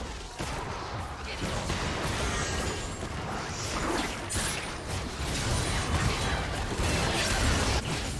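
Magic spells whoosh and burst in a busy video game battle.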